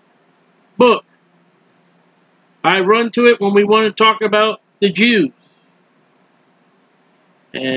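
A middle-aged man speaks calmly into a close microphone, in short bursts.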